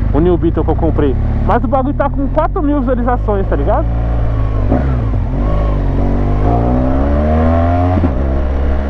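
A motorcycle engine hums close by and rises in pitch as it speeds up.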